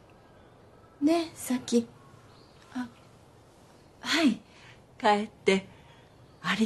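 A young woman speaks softly and briefly.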